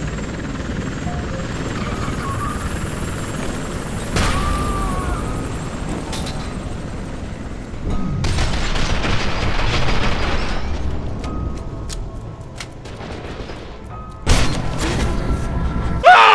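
Gunfire crackles from a video game.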